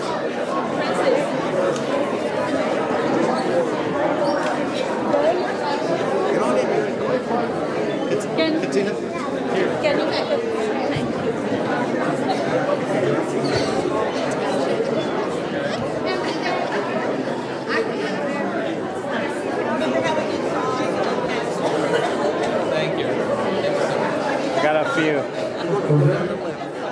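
A crowd of adults chatters in an echoing hall.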